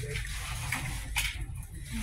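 A plastic basket rattles against a metal shelf.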